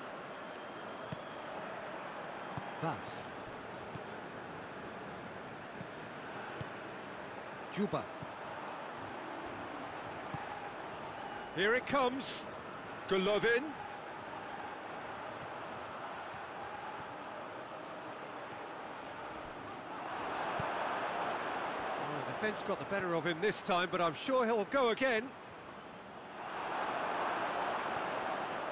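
A large stadium crowd murmurs and cheers steadily, swelling louder now and then.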